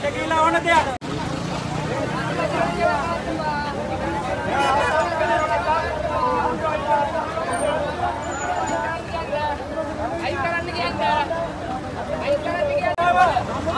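A crowd of men talks and shouts all around, outdoors.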